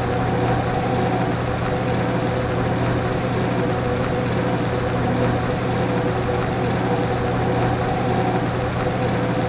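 A bus engine rumbles steadily.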